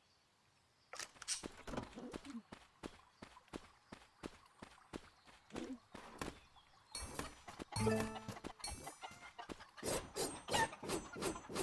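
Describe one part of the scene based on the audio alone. Small footsteps patter quickly on the ground.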